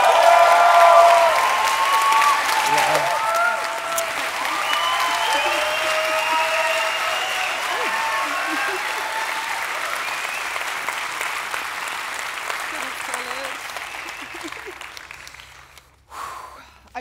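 A crowd applauds in a large hall, then the applause fades.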